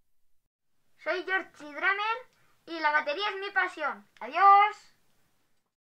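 A boy speaks with animation close by.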